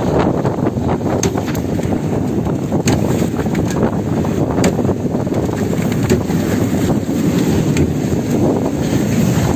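Waves splash and rush against a boat's hull.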